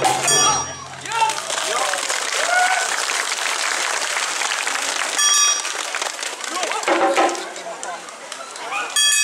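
Men and women dancers shout calls in chorus outdoors.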